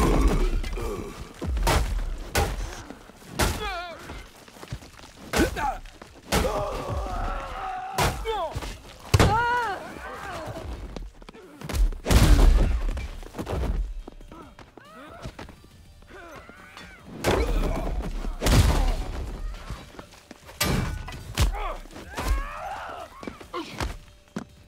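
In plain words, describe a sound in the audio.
Punches land with heavy, wet thuds again and again.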